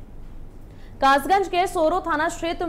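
A young woman speaks clearly and calmly into a microphone.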